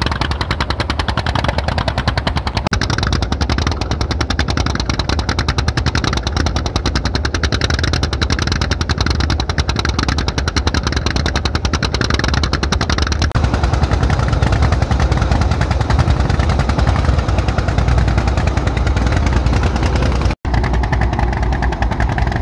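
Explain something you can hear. A boat engine chugs steadily with a fast, even beat.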